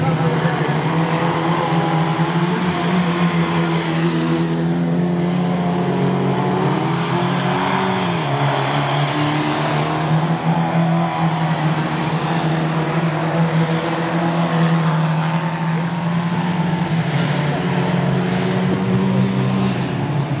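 Racing car engines roar and rev loudly around a dirt track.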